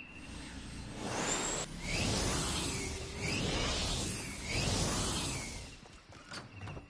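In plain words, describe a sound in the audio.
A hoverboard whooshes and hums as it speeds along.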